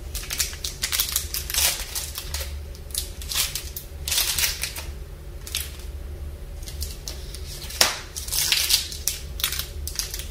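Plastic wrappers crinkle and rustle up close.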